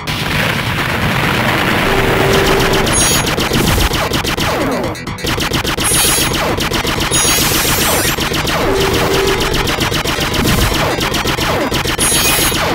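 Video game explosions boom.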